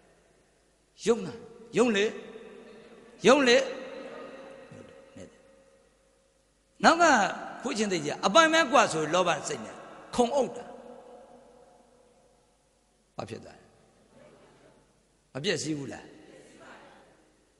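A man speaks with animation into a microphone, with echo in a large hall.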